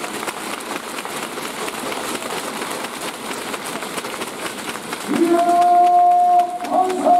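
Players slap hands together in quick high-fives.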